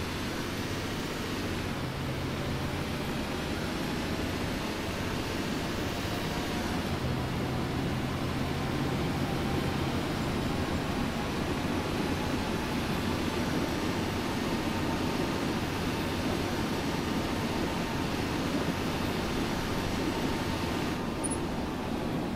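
A diesel city bus engine drones while cruising along a road.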